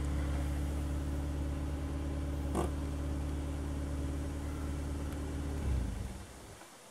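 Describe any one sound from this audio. A car engine idles nearby with a steady low rumble, then shuts off.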